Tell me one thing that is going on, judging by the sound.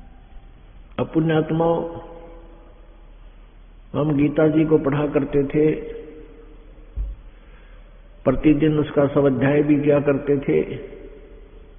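An elderly man chants in long, held phrases.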